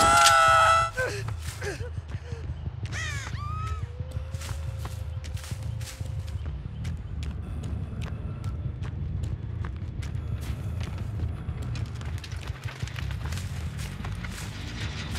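Heavy footsteps thud steadily over rough ground.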